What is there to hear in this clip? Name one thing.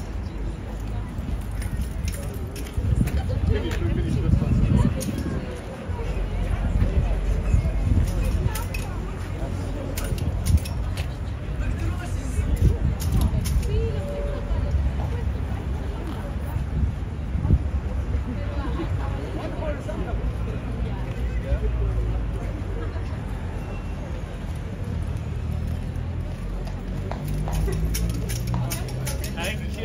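Men and women chat nearby.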